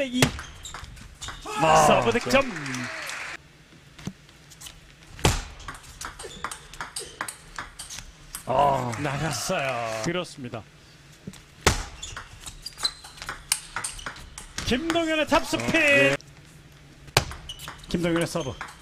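A table tennis ball clicks back and forth off paddles and the table.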